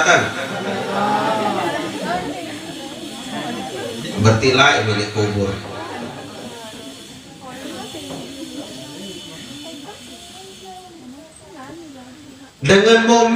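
A man speaks steadily into a microphone, heard through a loudspeaker.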